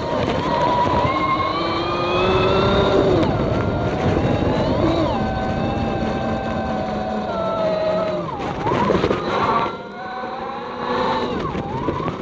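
Tyres rumble over a bumpy dirt road.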